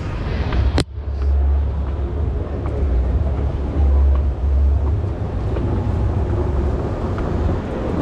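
An escalator hums and rumbles.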